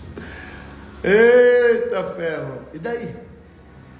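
A man laughs briefly.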